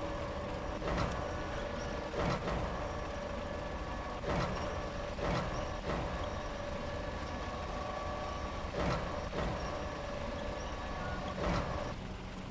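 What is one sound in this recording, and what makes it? Heavy cargo clunks down onto a truck bed.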